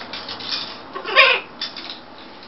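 A parrot squawks loudly once.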